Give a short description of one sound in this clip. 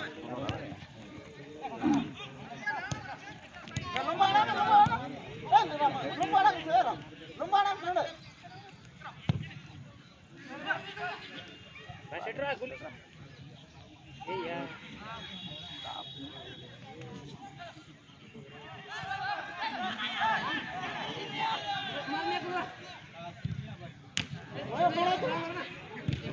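Several men talk and call out nearby, outdoors.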